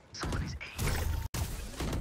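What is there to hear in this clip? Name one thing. Thrown knives whoosh through the air.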